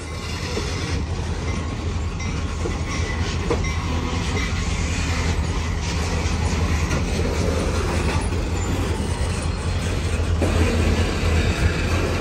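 Freight cars clatter and rattle over the rails.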